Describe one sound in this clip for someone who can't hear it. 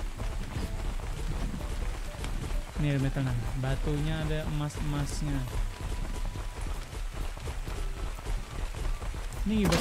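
A heavy creature's feet thud and scrape on stony ground.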